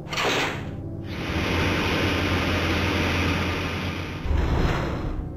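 An elevator hums and rattles as it descends.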